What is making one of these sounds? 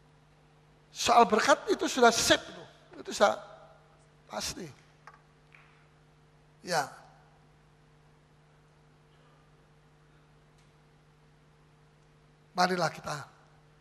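An older man speaks with animation into a microphone, in short bursts with pauses.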